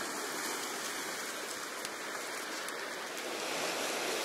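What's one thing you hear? Waves break and wash over rocks outdoors.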